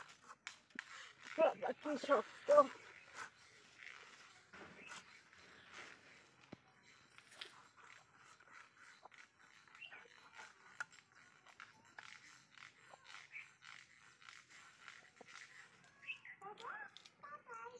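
A blade slices and crunches through a fish.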